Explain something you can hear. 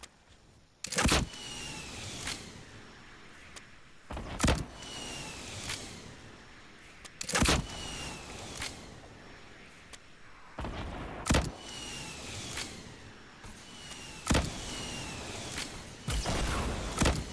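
A rocket launcher fires with loud blasts and whooshes.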